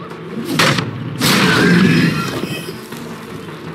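Wooden boards crack and splinter as a pallet is smashed.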